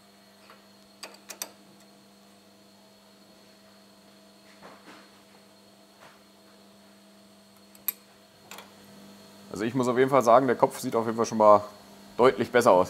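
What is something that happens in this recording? Metal parts click and tap against each other.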